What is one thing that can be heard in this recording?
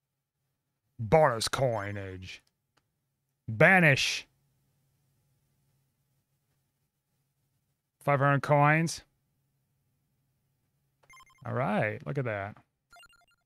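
Short electronic game jingles play now and then.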